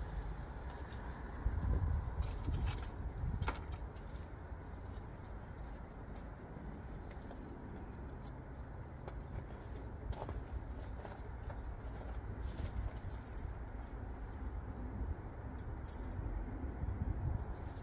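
Plastic plant pots knock and rustle as they are handled.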